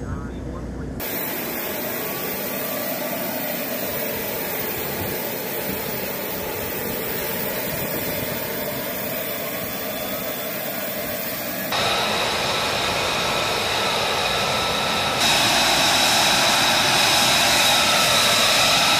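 A jet engine roars and whines steadily close by.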